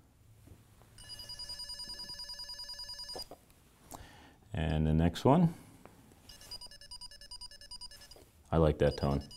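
An electronic cable tester emits a rapid, high warbling tone.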